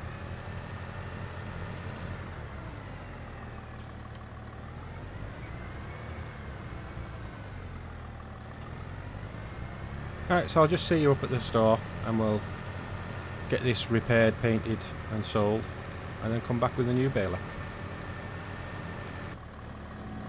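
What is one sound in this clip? A tractor engine hums steadily as it drives.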